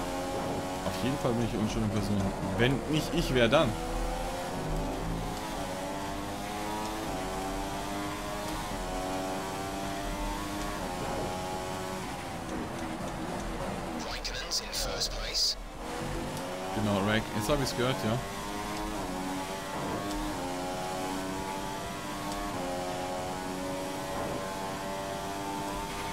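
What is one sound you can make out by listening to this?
A racing car engine screams at high revs, rising through the gears and dropping sharply when braking.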